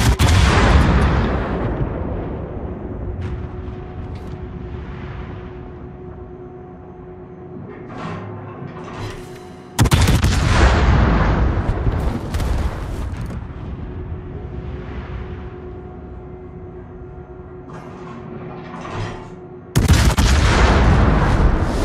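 Heavy naval guns fire a booming salvo that rumbles away slowly.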